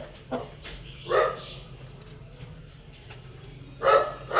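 A rooster squawks loudly.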